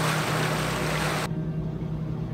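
Water rushes and churns behind a moving boat.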